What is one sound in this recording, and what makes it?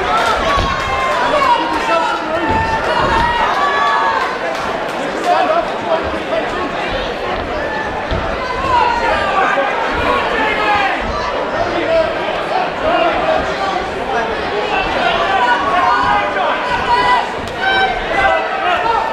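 A crowd of men and women shouts and cheers throughout a large echoing hall.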